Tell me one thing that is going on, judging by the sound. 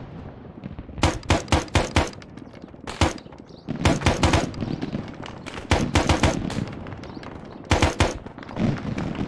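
A rifle fires sharp, loud shots in quick bursts.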